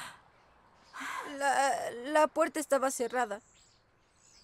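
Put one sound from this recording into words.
A young boy speaks quietly.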